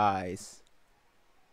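A young man exclaims in surprise close to a microphone.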